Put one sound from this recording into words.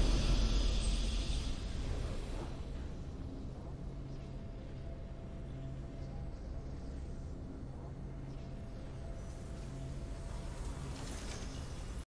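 A triumphant game fanfare swells and then fades into low, steady music.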